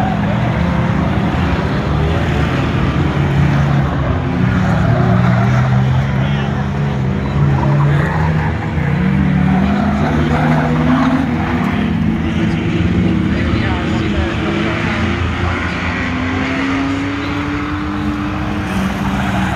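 Racing car engines roar loudly and rev up and down close by.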